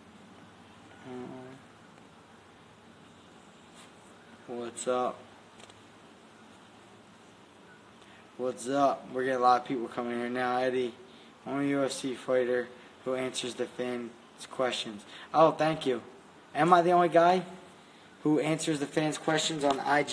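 A man speaks calmly and close to a phone microphone, with long pauses.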